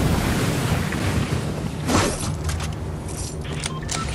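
A character lands on a hard roof with a thud.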